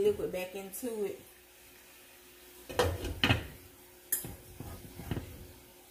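A glass lid clinks onto a metal pan.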